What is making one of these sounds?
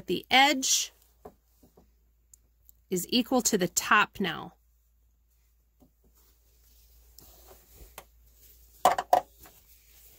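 Fabric rustles and slides under hands.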